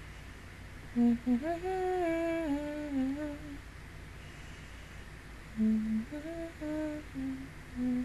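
A young woman sings softly close to a microphone.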